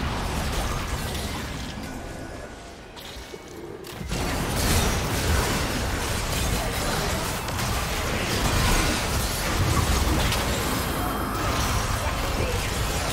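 Spell blasts and magical explosions crackle and boom in a fast battle.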